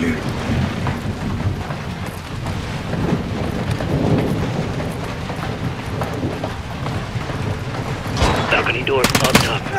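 Boots clang on metal stairs.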